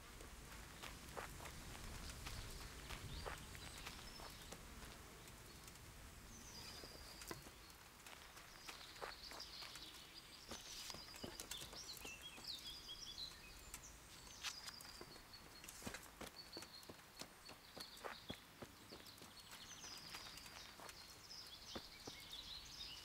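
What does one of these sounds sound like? Footsteps crunch through forest undergrowth.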